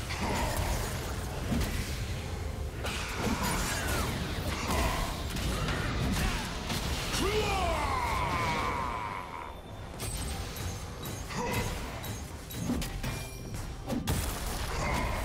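Game spell effects whoosh, crackle and clash in a busy fight.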